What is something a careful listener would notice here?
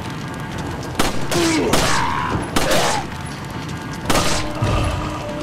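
Pistol shots ring out sharply.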